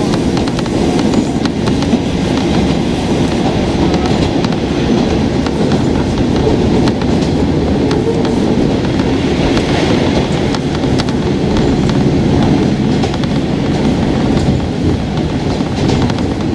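Train wheels click and clack over rail joints.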